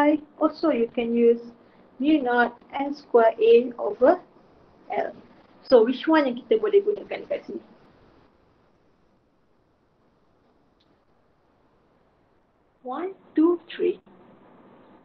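A young woman explains calmly, heard through an online call.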